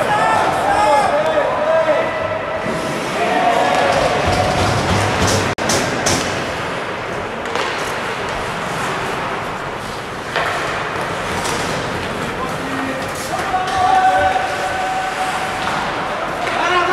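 Players shout to each other across an echoing rink.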